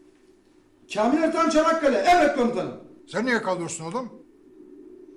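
An elderly man speaks sternly, close by.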